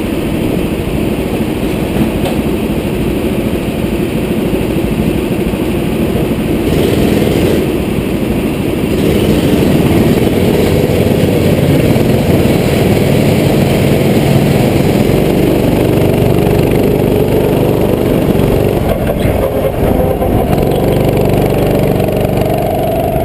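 A kart engine rumbles close by, revving higher as it speeds up.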